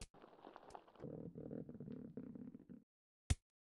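Water gushes and splashes.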